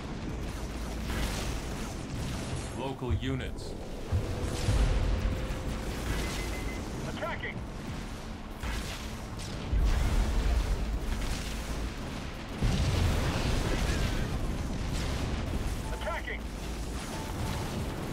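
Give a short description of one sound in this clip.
Gunfire and laser blasts crackle in a game battle.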